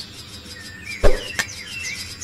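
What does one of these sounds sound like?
A heavy body thuds onto a hard floor.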